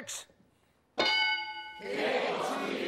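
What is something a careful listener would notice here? A bright electronic chime rings out.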